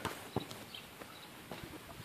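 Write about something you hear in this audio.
A child's footsteps run softly across grass.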